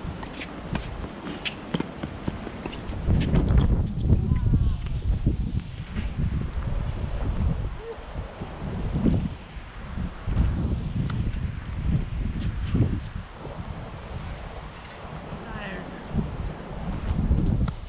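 Tennis balls pop off rackets in a rally.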